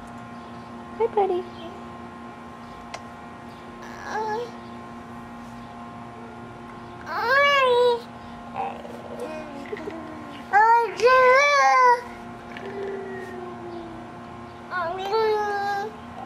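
A baby coos and squeals close by.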